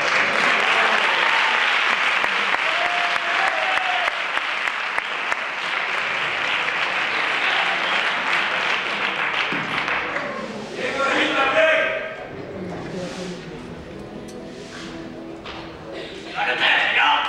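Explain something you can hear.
Guitars strum on stage.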